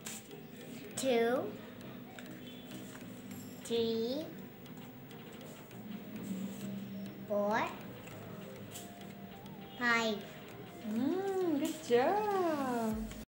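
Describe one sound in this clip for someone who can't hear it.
A young girl speaks in short, high-pitched bursts close by.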